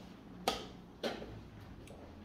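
A chess clock button is pressed with a sharp click.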